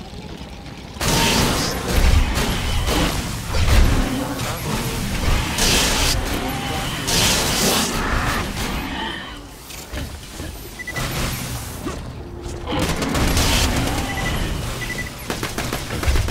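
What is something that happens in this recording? Energy guns fire in rapid bursts with electric crackling.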